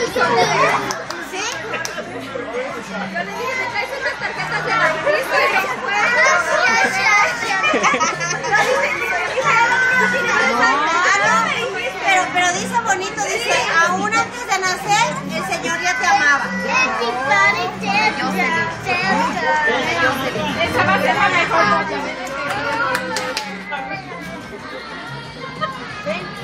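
Several people talk over each other with animation.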